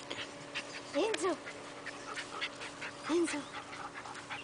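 A puppy gives short, soft yips.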